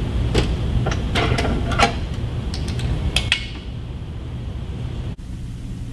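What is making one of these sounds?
A metal pin clicks into a weight stack.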